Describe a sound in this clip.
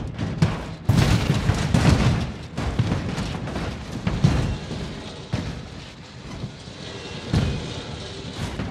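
A truck's engine rumbles low.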